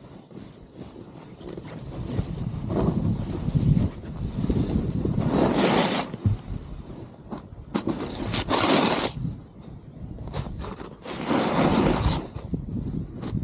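A snowboard scrapes and hisses over snow in surges.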